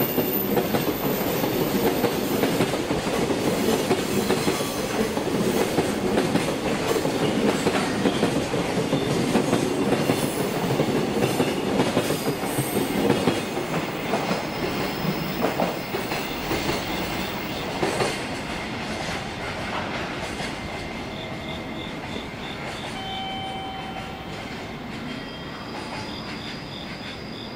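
A freight train rumbles past on the rails, wheels clattering, and slowly fades.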